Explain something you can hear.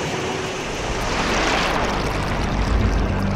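Water bubbles and churns underwater.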